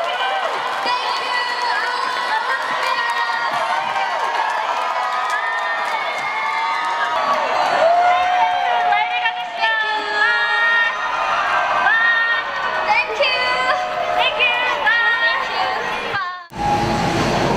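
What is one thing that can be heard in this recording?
A crowd cheers and screams loudly.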